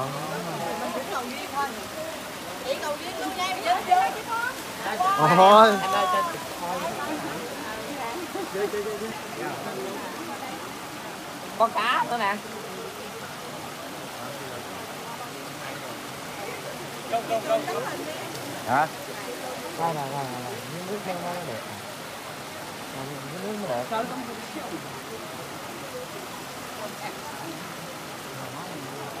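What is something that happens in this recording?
Water pours steadily from spouts into a pool.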